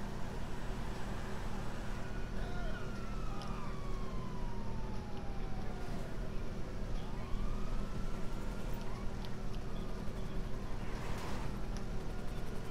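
Car tyres hiss on wet road.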